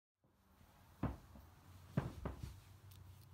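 Books knock against each other on a shelf.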